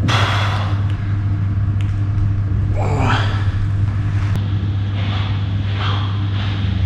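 A man breathes heavily close by.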